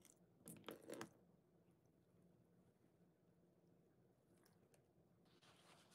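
Liquid squirts from a bottle onto a wet sponge.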